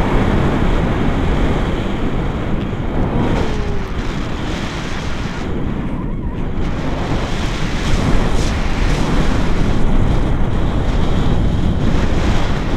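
Strong wind rushes and buffets loudly outdoors throughout.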